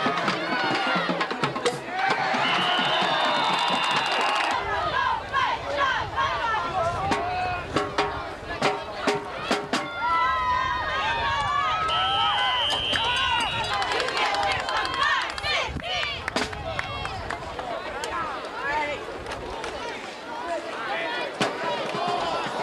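Young men shout and call out on an open field.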